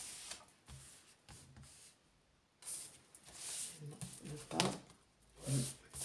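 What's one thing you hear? Cards rustle and slide as a hand shuffles them.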